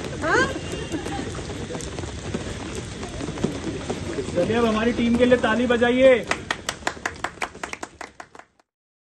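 Rain patters on umbrellas.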